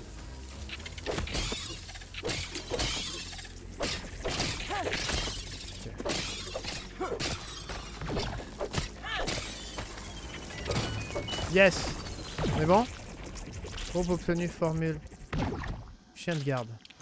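Weapon blows strike with sharp thuds.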